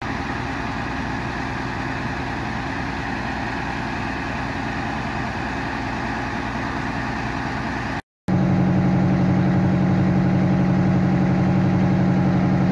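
A fire truck engine idles with a steady low rumble.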